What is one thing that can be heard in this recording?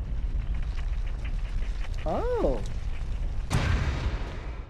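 A heavy metal door rumbles as it slides shut and slams.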